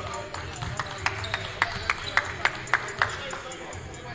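A basketball bounces on a hardwood floor in a large echoing hall.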